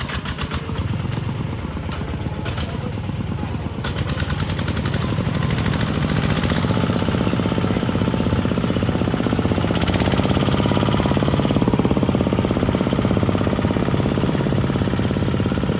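A cart rattles and bumps over a dirt track.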